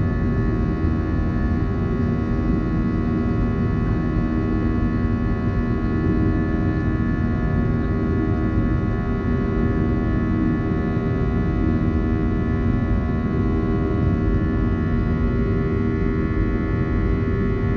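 Jet engines roar steadily from inside an airliner cabin as the plane climbs.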